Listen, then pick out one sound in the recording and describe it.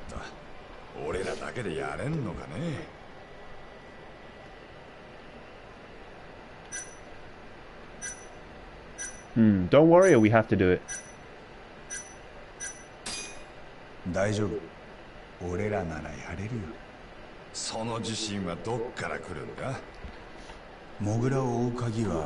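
A younger man answers calmly in a low voice, close by.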